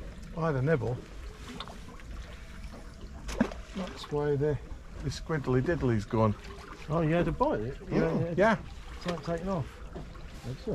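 A middle-aged man talks calmly close by, outdoors.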